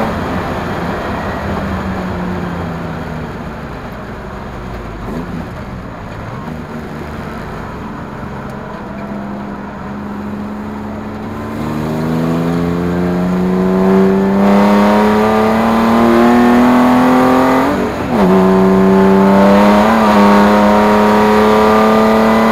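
A car engine hums and revs up through the gears, rising in pitch as it speeds up.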